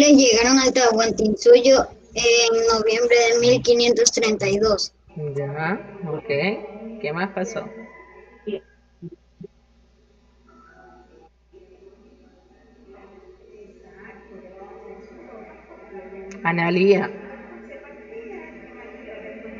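A child speaks over an online call.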